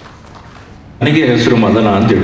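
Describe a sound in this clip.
A young man speaks with animation into a microphone over loudspeakers.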